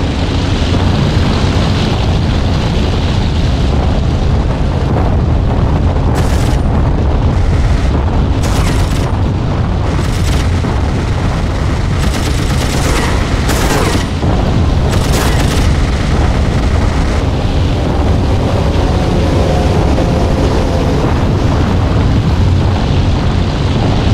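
A propeller engine drones steadily with a low rumble.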